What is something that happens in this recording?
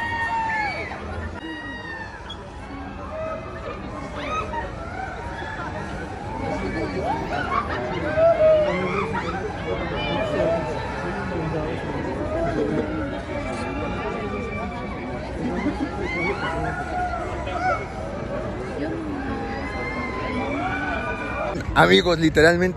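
A crowd of riders screams on a swinging ride, heard from nearby outdoors.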